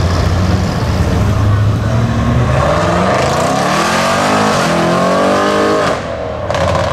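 A car engine roars loudly as it accelerates, rising in pitch through the gears.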